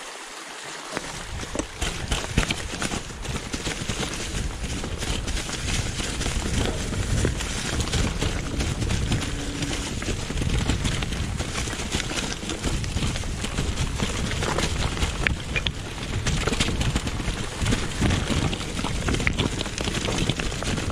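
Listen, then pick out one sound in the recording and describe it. A bicycle rattles and clatters over rough ground.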